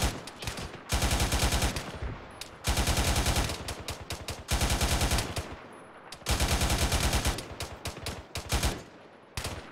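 A machine gun fires loud, rapid bursts.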